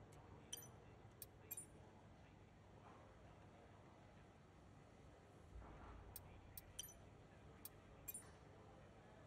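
Sharp short menu clicks tick now and then.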